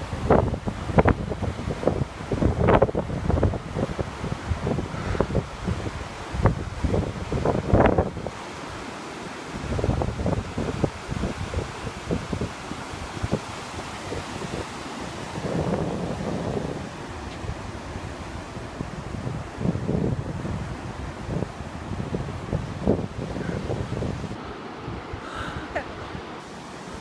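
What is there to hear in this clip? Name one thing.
Small waves wash and break gently on the shore.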